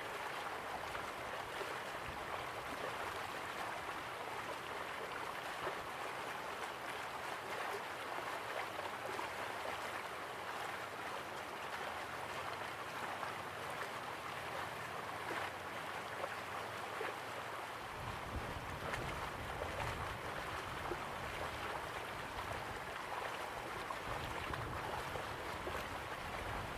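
A waterfall rushes steadily.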